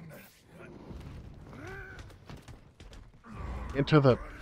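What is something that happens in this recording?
Heavy blows thud as a fighter is slammed against a wall.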